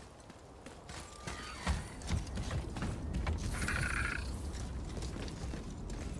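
Heavy boots thud on wooden planks.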